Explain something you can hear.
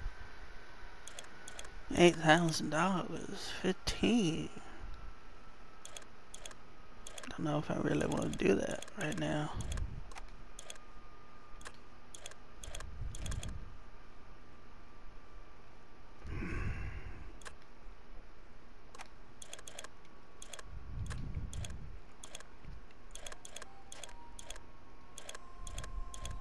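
Short menu clicks tick again and again as selections change.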